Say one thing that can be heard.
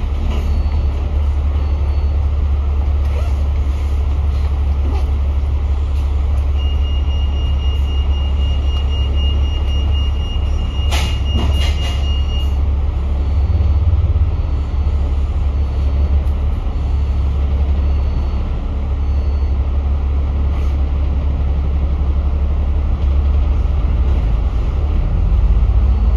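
A bus engine rumbles steadily from close by.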